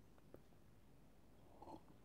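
A young man sips a drink from a cup.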